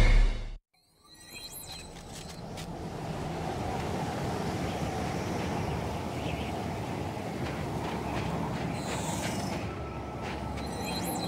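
A strong wind howls and roars steadily outdoors in a blizzard.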